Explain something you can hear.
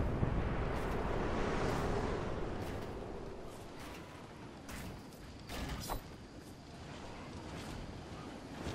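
Game building pieces snap into place with quick, repeated clicks.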